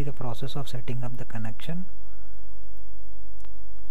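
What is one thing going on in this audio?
A kettle lid snaps shut.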